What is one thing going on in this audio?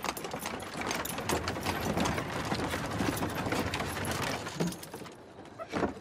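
Carriage wheels rumble over cobblestones.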